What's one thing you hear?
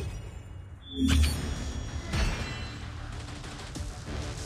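A short victory fanfare plays.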